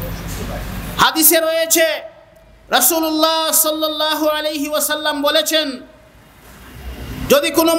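A man preaches with animation into a microphone, heard through loudspeakers.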